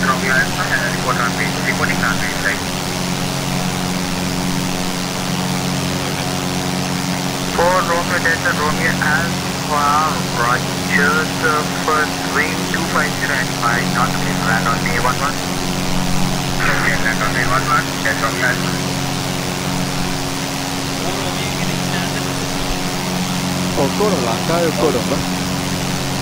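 A young man talks calmly into a headset microphone, in bursts.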